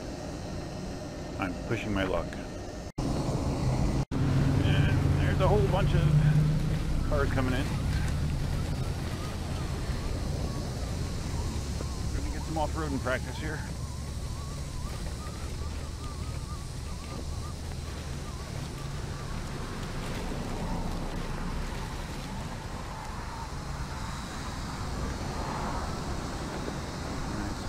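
An electric wheel rolls steadily over pavement with a low rumble.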